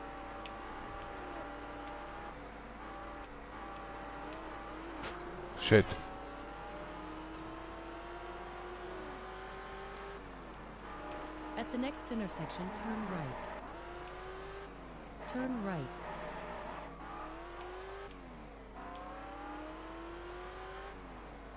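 A car engine drones steadily, rising in pitch as it speeds up and dropping at each gear change.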